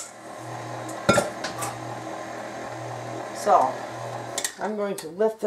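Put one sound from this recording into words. An electric stand mixer whirs steadily.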